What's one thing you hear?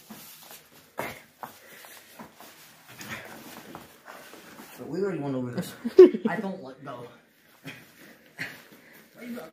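Bodies thump and scuffle on a padded mat.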